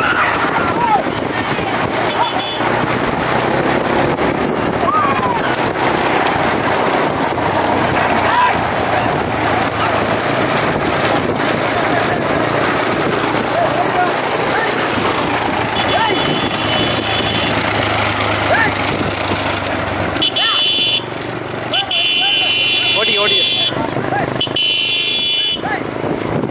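Bullock hooves clatter on a paved road.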